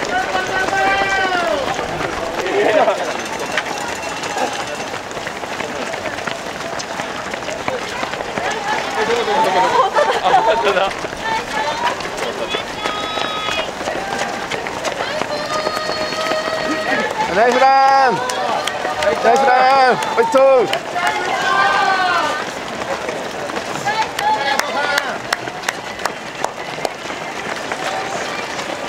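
A crowd of spectators shouts and cheers nearby outdoors.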